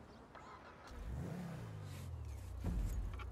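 A car engine starts and runs.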